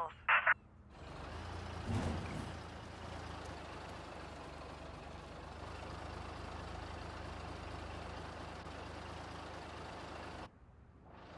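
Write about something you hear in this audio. A motor hums steadily and low.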